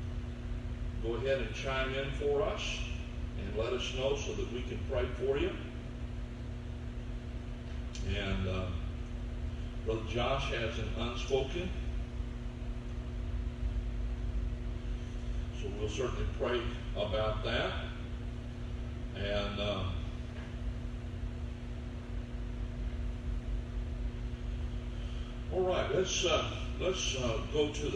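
A man speaks slowly and earnestly into a microphone, with long pauses, in a room with some echo.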